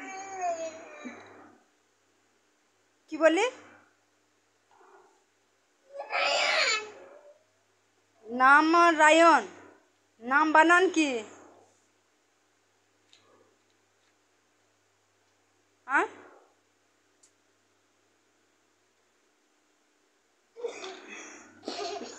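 A young boy speaks close by, in short bursts with pauses.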